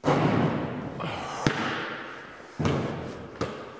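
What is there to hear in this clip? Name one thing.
A basketball clanks off a metal rim.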